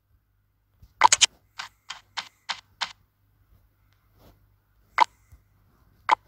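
Game menu clicks and chimes sound as options are picked.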